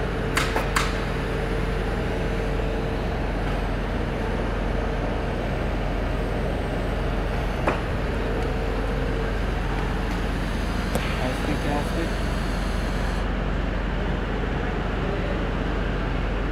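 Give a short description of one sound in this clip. A welding arc hisses and crackles steadily.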